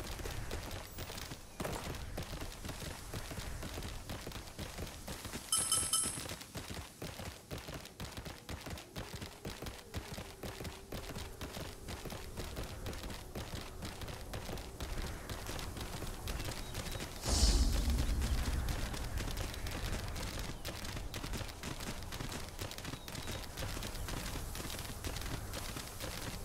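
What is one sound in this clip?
A creature's feet thud quickly and steadily as it runs over the ground.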